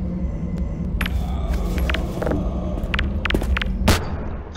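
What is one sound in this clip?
A grenade bounces and clatters on a hard floor.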